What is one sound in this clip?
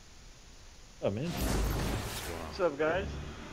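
A shimmering, magical whoosh swells up suddenly and then fades.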